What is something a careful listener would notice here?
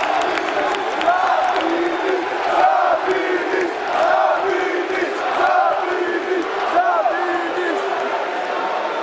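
A crowd of people chants in rhythm, close by.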